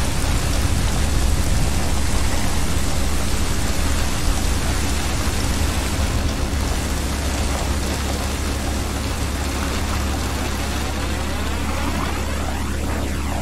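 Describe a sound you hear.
Water splashes steadily as a swimmer paddles through the sea.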